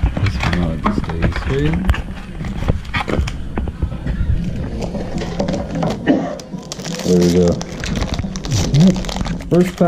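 Cardboard boxes rustle and scrape as hands handle them.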